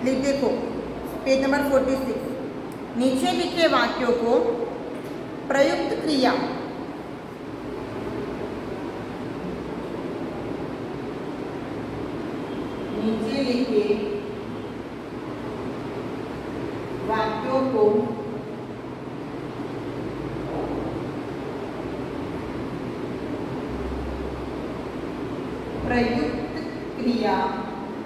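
A young woman speaks calmly, in short bursts with pauses.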